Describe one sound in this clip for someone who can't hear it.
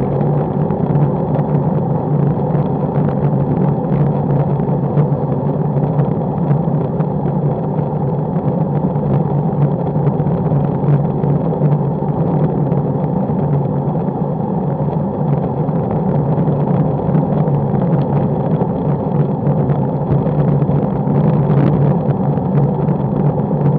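Wind roars steadily past the microphone at high speed.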